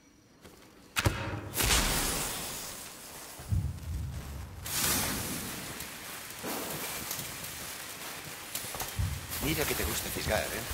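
A lit flare hisses and sputters steadily.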